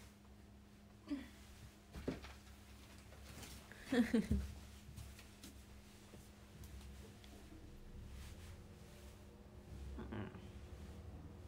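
A young woman speaks softly and close by, with pauses.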